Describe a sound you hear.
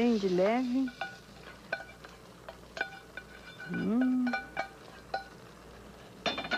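A metal spoon clinks and scrapes against a metal pot.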